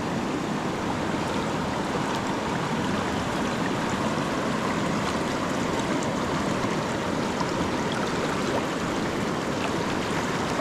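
Water ripples and trickles steadily nearby.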